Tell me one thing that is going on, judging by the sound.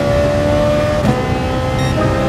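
A racing car engine drops in pitch briefly as a gear shifts up.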